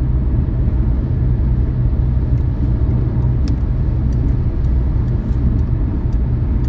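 Tyres rumble deeply and steadily on the road, heard from inside a car.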